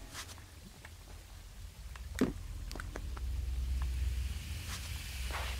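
Soft thumps and knocks sound as a figure jumps and climbs.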